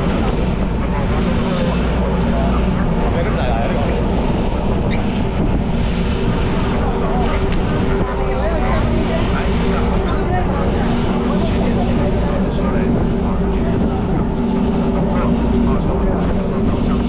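A boat engine hums steadily.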